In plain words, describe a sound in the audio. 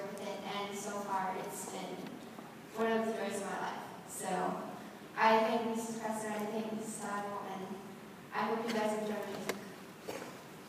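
A young woman speaks calmly into a microphone in an echoing hall.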